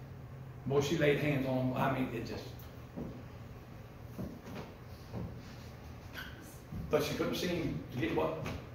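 An elderly man speaks calmly in a room with some echo.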